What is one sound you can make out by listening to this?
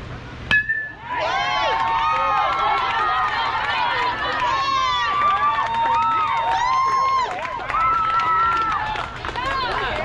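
Young players shout and cheer excitedly outdoors.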